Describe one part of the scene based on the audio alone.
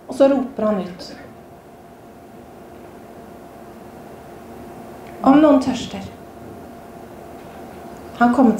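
A woman speaks calmly through a microphone in a room with some echo, with long pauses.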